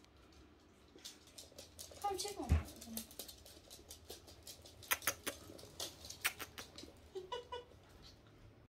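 Puppies' claws patter on a wooden floor.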